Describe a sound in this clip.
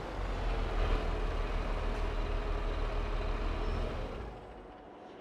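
A tractor engine idles with a low, steady rumble.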